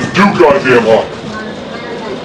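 An elderly man speaks nearby.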